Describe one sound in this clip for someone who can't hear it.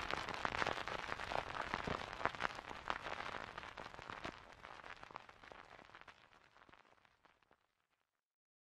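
A large crowd cheers loudly outdoors and slowly fades away.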